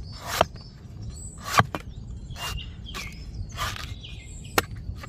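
A cleaver slices through coconut flesh with wet, scraping cuts.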